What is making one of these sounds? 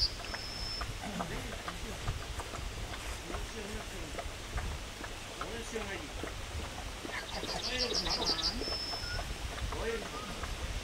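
A man calls out commands to a dog outdoors.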